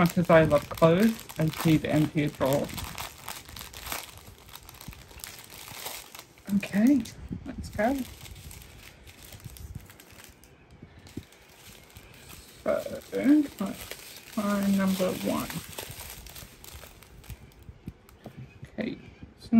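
Plastic bags crinkle and rustle as they are handled.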